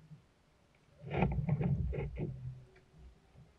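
A fishing rod swishes through the air as a man casts.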